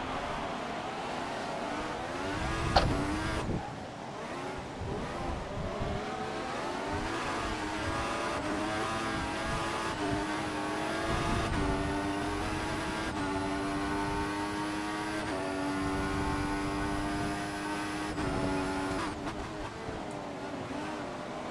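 A racing car engine roars and rises in pitch through quick gear changes.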